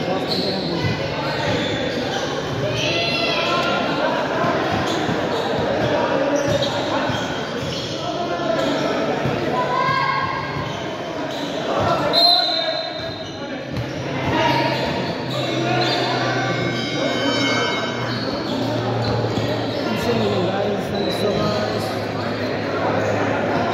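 A crowd of young men and women chatter and cheer in an echoing hall.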